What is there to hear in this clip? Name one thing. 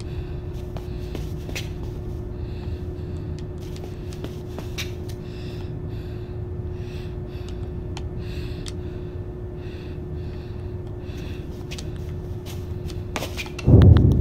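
Small footsteps patter steadily on a hard floor.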